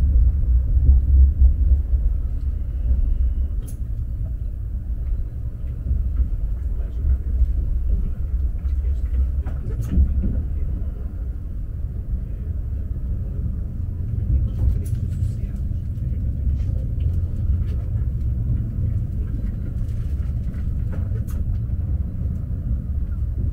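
A train rumbles steadily along the tracks from inside a carriage.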